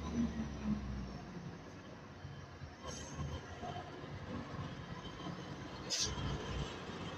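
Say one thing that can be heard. A heavy truck engine rumbles as the truck drives slowly along a road.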